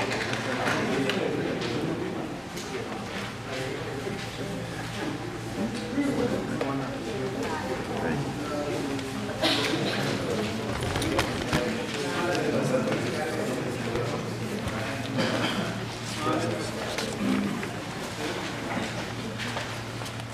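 Several men and women talk over one another in a room with a slight echo.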